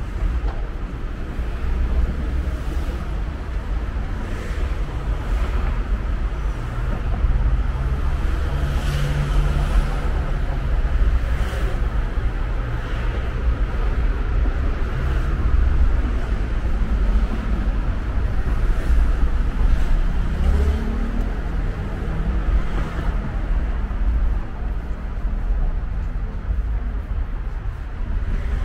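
Footsteps tap steadily on cobblestones outdoors.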